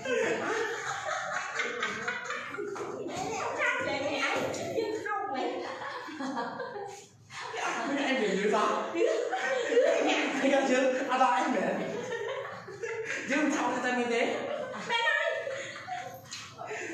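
Several women talk and laugh with animation close by.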